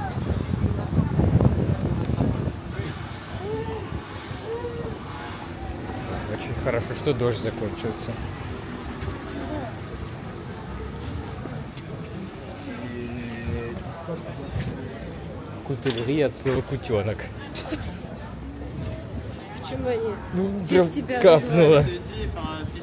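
Footsteps tap on wet pavement.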